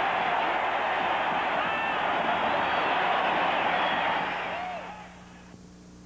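A large stadium crowd roars, then fades.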